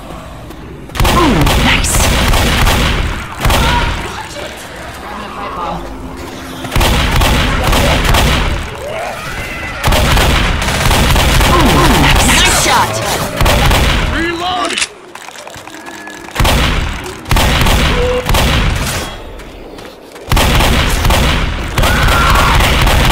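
Shotgun blasts boom loudly and repeatedly.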